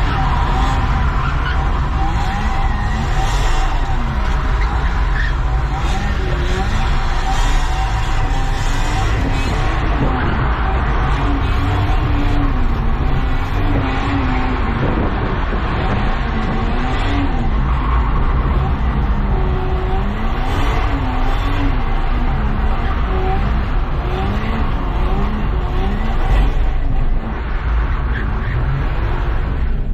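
A car engine revs up and down as the car swerves.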